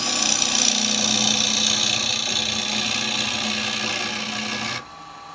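A lathe hums steadily.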